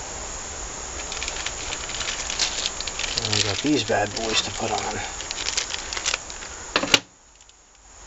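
Small metal parts clink and rattle as they are handled.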